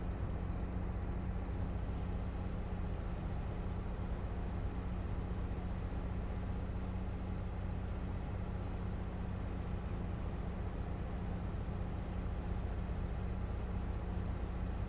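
A harvester header rattles and whirs while cutting grain.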